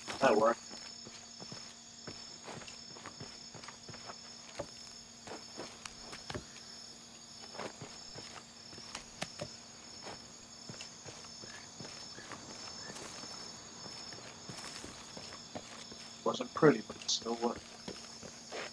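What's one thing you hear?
Footsteps crunch through grass and dirt.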